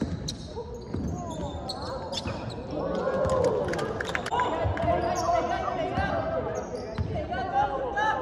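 Young men shout and call out across the court.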